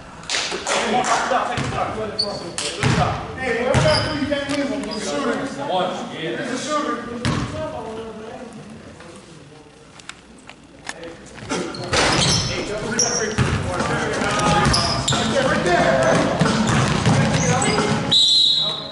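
Young men shout and call out to each other across an echoing gym.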